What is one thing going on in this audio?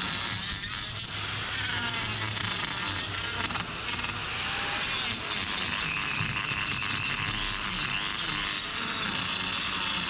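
An electric grinder whirs loudly and steadily against a hoof.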